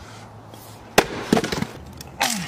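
An axe splits a log with a sharp crack.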